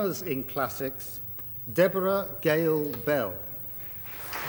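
A man reads out names through a loudspeaker in a large echoing hall.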